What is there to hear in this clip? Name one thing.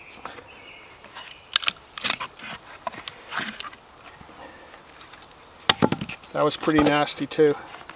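Wood cracks and splits apart.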